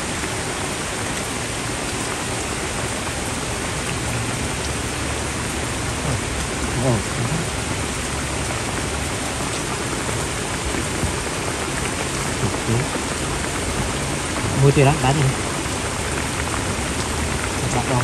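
Broth bubbles and simmers steadily in a pan.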